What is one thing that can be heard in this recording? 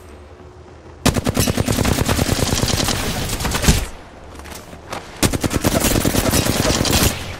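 A rapid burst of gunfire rattles loudly.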